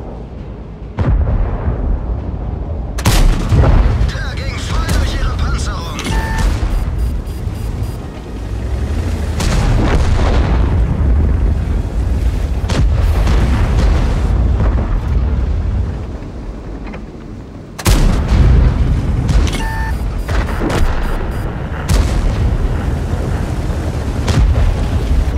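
A tank engine rumbles and clanks as the tank drives.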